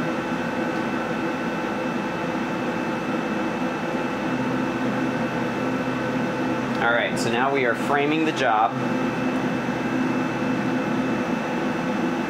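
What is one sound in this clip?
A laser engraving machine hums steadily.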